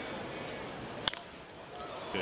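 A pitched baseball pops into a catcher's leather mitt.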